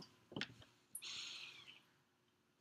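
A woman sips a drink from a mug.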